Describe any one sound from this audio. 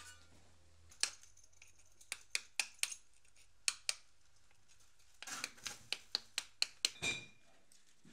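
A hammer taps a chisel against stone in sharp, quick knocks.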